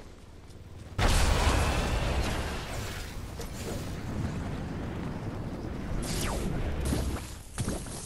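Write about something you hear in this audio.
Wind rushes loudly past during a fall.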